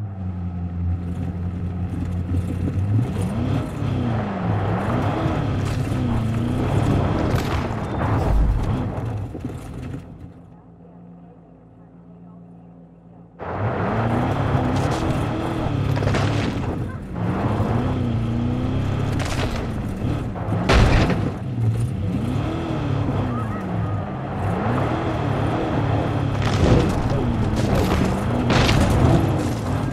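A car engine hums and revs as it drives over rough ground.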